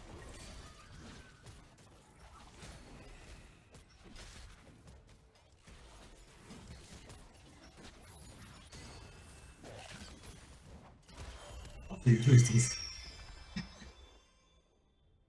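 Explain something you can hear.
Magic blasts and weapon strikes clash rapidly in a video game battle.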